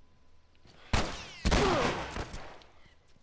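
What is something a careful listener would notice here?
Gunshots ring out sharply a few times.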